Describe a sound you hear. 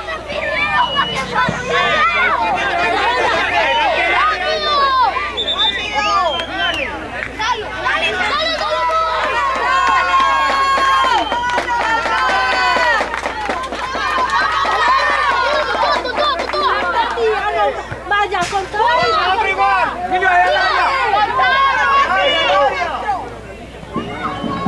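A crowd of children and adults shouts and cheers outdoors.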